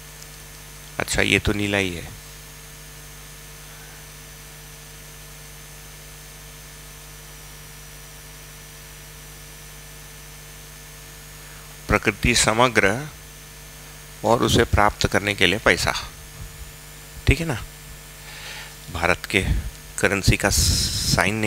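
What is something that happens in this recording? A man speaks in short bursts, lecturing.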